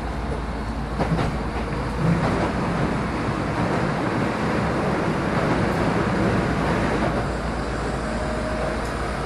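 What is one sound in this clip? A train rumbles along the tracks toward the listener.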